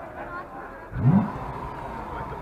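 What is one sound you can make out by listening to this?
A sports car engine revs sharply once.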